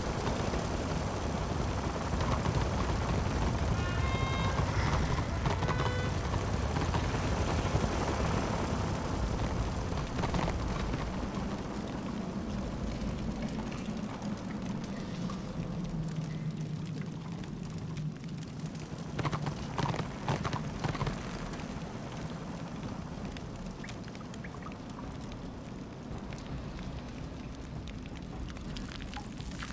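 Hooves clop steadily on stone as a mount trots along.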